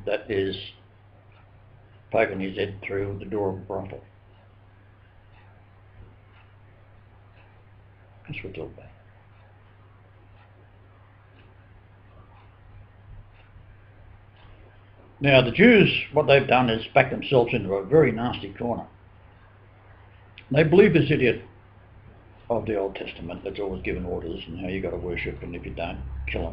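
An elderly man speaks calmly in bursts, close to a webcam microphone.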